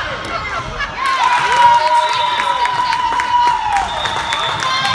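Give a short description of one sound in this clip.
A referee's whistle blows.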